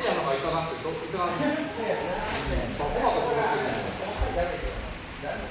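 A man talks nearby in an echoing hall.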